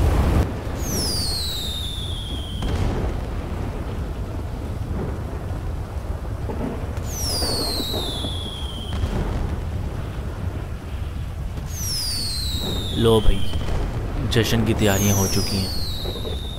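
Firework rockets whistle with a falling pitch as they shoot up.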